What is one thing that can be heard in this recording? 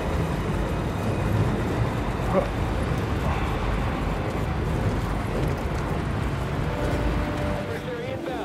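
Footsteps clank on metal grating.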